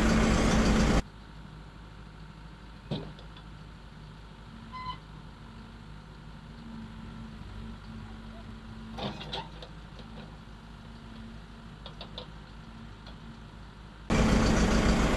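A tractor engine hums faintly from a distance as the tractor drives slowly.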